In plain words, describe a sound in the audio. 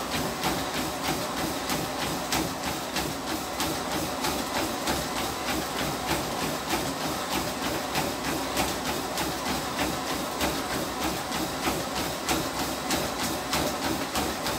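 Running footsteps pound quickly and steadily on a treadmill belt.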